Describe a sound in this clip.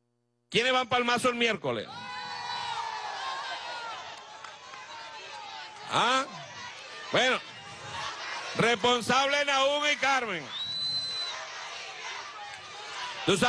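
A man shouts loudly into a microphone through loudspeakers.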